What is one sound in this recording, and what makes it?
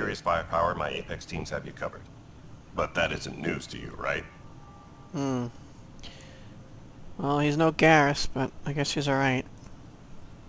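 A man with a deep, rough voice speaks calmly up close.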